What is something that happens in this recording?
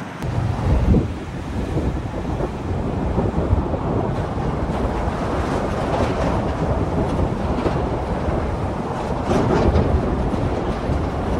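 A vehicle drives slowly, its tyres rumbling over the road.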